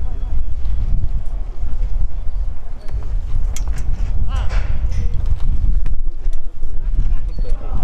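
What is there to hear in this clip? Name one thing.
Young men shout to each other across a field in the distance.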